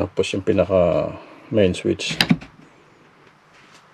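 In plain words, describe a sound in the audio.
A rotary switch clicks as a hand turns it.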